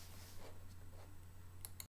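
A young boy speaks briefly nearby.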